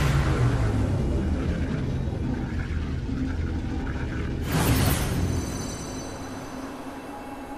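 A deep, swirling rumble roars loudly and slowly fades.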